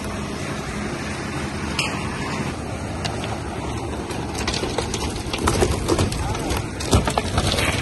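A wheelbarrow rolls and rattles across a rough surface.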